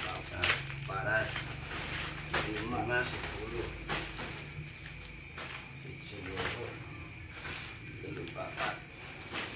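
Packets of snacks drop into a sack with soft thuds.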